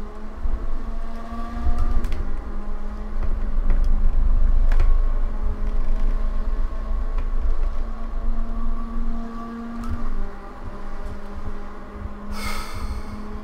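A racing car engine drones steadily, shifting pitch as the car changes gear.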